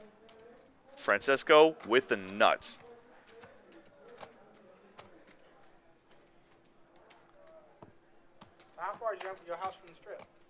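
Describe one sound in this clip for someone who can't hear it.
Poker chips click together in a hand.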